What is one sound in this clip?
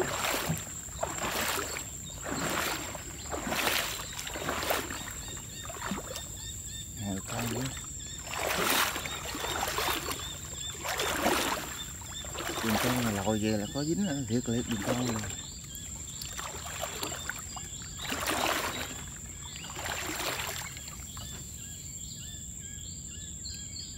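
Water laps gently against a riverbank.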